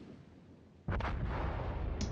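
Heavy naval guns fire with a loud boom.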